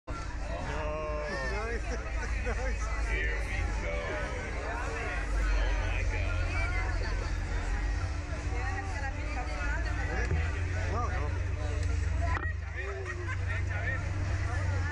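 Young men talk excitedly close by.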